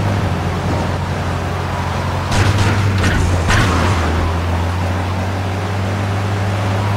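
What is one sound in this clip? A car engine hums steadily.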